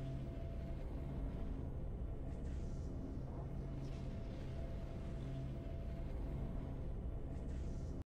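Triumphant music plays steadily.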